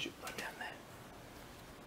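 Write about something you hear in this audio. A young child speaks briefly up close.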